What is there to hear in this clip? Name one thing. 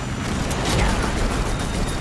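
A machine gun fires a burst of shots.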